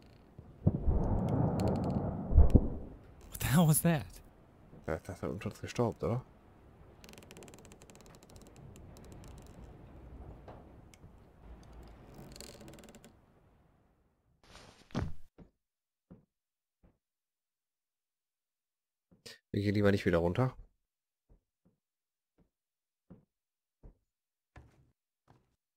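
Footsteps creak on a wooden floor and stairs.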